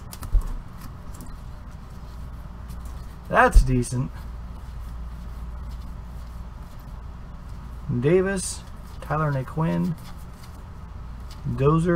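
Trading cards rustle and slide as they are shuffled by hand.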